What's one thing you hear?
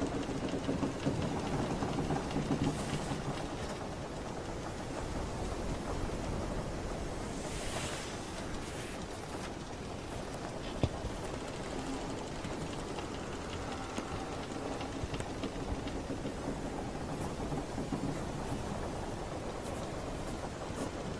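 A wooden ship creaks as it rocks on the water.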